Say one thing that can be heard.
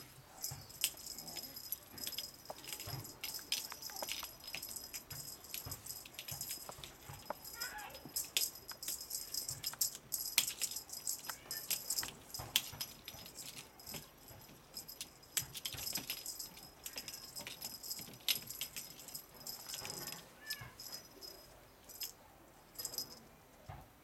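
A kitten's paws patter and scrabble on a plastic floor.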